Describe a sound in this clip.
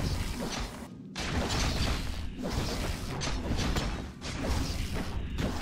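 Weapons clash in a fantasy game battle.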